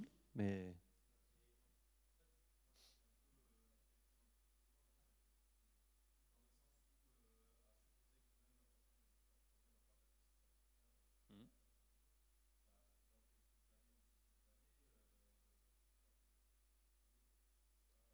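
A man speaks calmly through a microphone, heard faintly in a large hall.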